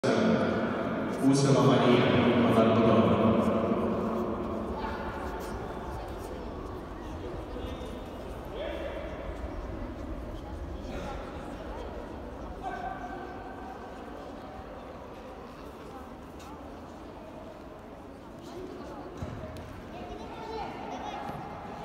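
A crowd of people murmurs and talks in a large echoing hall.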